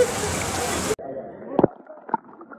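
Water sloshes and gurgles, heard muffled at the water's surface.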